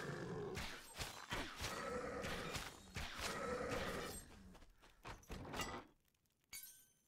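Swords clash and strike in a quick fight.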